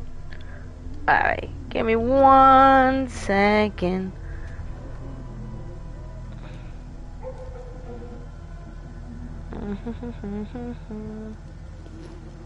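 A young woman speaks with animation close to a microphone, her voice rising into a long drawn-out cry.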